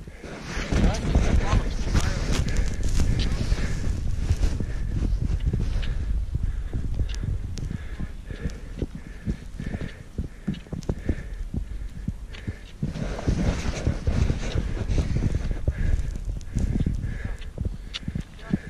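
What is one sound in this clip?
Boots crunch through snow close by.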